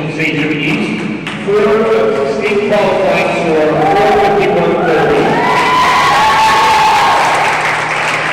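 A crowd of people sings together in a large echoing hall.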